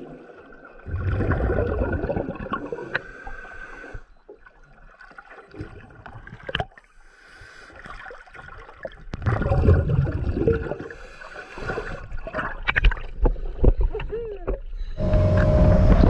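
A boat's motor churns, muffled under water.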